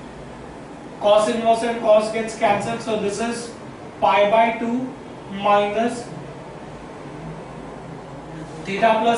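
A man explains calmly, close by.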